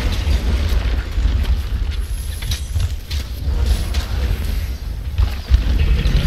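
A huge monster stomps with a deep rumble.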